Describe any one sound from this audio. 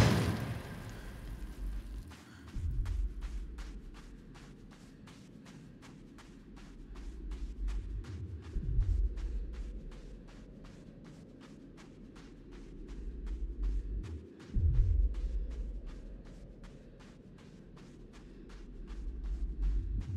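Light footsteps run quickly across a hard floor.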